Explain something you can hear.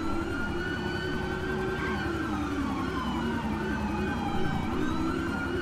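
Several police sirens wail and warble together.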